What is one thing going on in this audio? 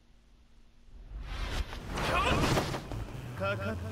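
Loud whooshing effects sweep in as a fight opens.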